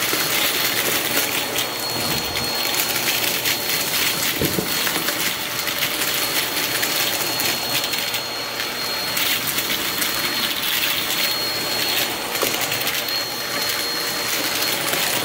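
Confetti rattles and crackles as a vacuum cleaner sucks it up.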